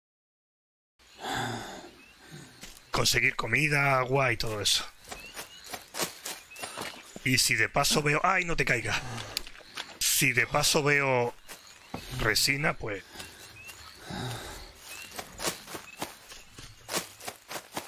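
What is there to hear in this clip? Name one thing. Footsteps crunch through leaves and undergrowth.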